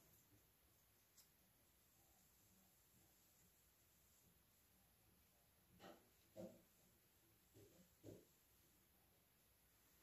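A hand softly smears wet paint.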